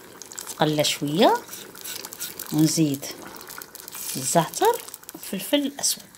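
A spatula scrapes and stirs in a metal pot.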